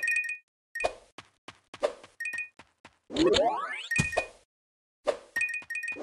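Short bright chimes ring in quick bursts as coins are collected.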